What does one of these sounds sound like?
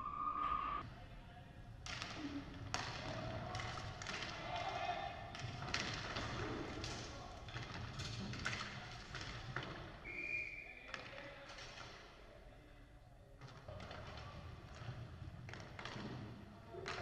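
Roller skate wheels rumble and clatter across a wooden floor in a large echoing hall.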